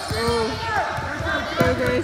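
A basketball bounces on the floor as it is dribbled.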